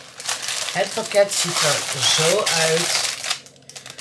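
A plastic food bag crinkles in a woman's hands.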